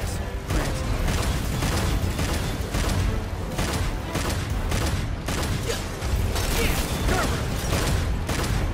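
Blades slash and heavy blows crash in quick, loud bursts.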